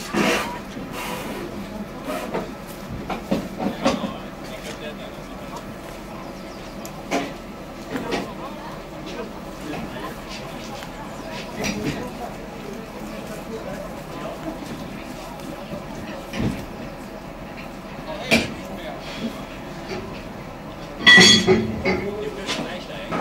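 A train rolls along the track with a steady rumble.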